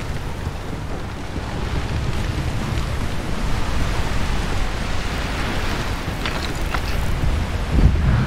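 Waves wash and splash against a ship's hull.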